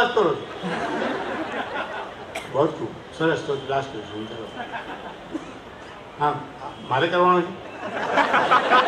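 An elderly man speaks with animation into a microphone, heard through loudspeakers.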